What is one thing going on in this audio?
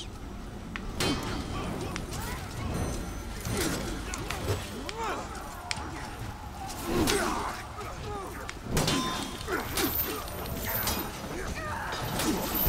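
Metal blades clash and clang in sharp bursts.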